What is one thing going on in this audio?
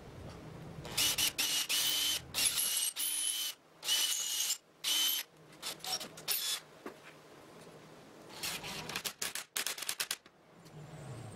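A cordless drill whirs in short bursts as it drives screws into wood.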